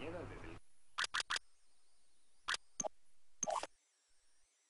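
Menu clicks sound in short sharp bursts.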